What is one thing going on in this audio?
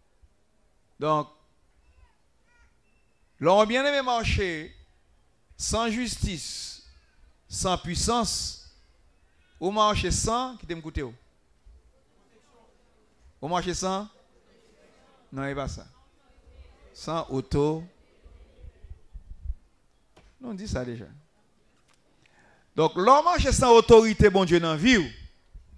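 A man sings into a microphone in short, drawn-out phrases with pauses between them.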